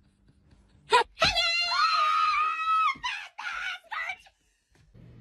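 A child screams and shrieks loudly.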